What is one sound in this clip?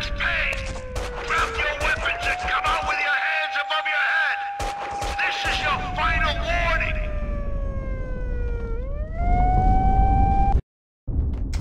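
A police siren wails, rising and falling slowly.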